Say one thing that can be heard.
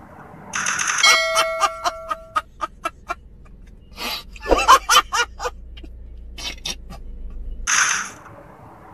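A man laughs loudly and wildly, close by.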